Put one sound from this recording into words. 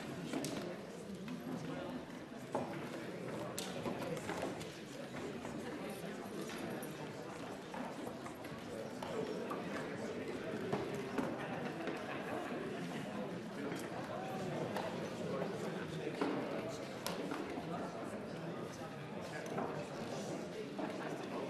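A man speaks steadily through a microphone in a large hall.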